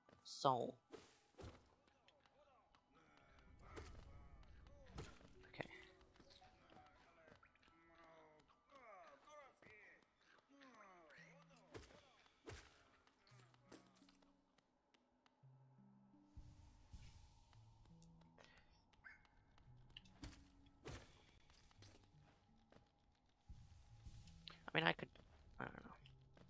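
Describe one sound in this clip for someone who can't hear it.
Sharp sword slashes whoosh in quick bursts.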